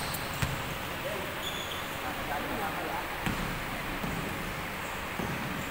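Young men call out in a large echoing gym.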